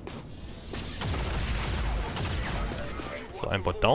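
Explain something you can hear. Gunfire crackles in a burst.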